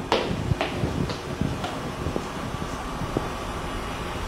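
Footsteps climb wooden stairs and cross a floor.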